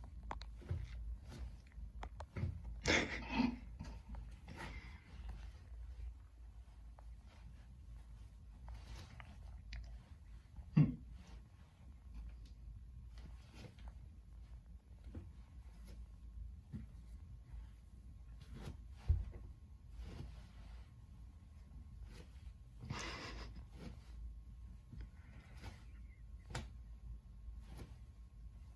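Feet in socks step softly on a tile floor, squashing soft clay.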